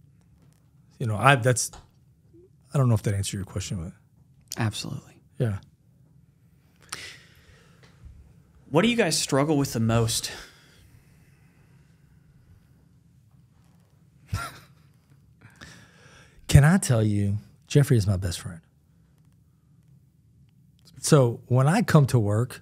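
Middle-aged men talk calmly in turn into close microphones.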